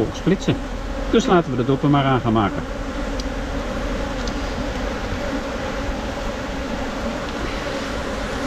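Honeybees buzz steadily in a dense swarm close by.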